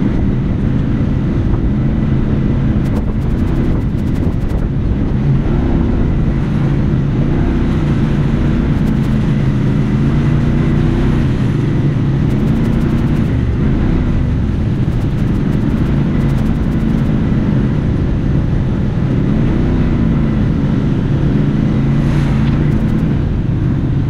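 Tyres rumble over a rough dirt track.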